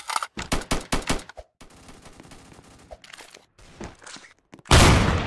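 A pickaxe swings and strikes wood in quick, sharp hits.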